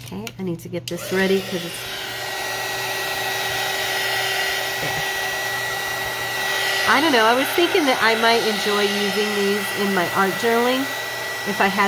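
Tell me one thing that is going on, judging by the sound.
A heat gun blows with a steady whirring roar.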